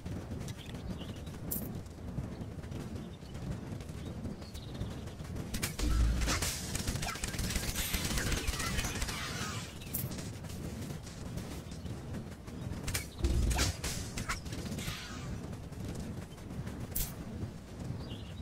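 Game combat effects clash and thud.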